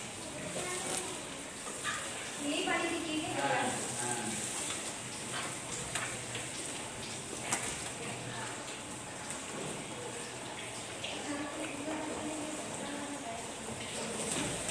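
Grass stalks rustle as they are handed to animals.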